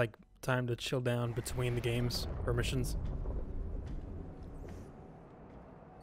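A deep whooshing rumble swells and fades.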